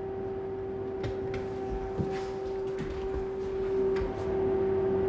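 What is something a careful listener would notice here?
A door swings open and shut with soft knocks.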